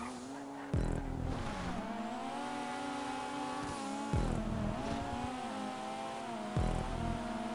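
Tyres squeal as a car drifts through bends.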